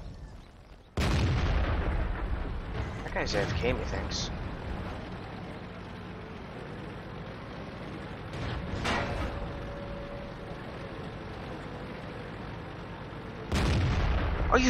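A tank cannon fires with a loud, heavy boom.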